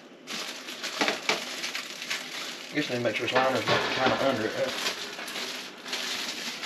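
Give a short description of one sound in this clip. A utensil clinks and scrapes against a pot.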